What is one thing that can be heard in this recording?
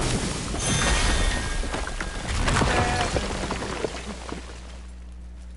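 A loud blast bursts and crackles with shattering debris.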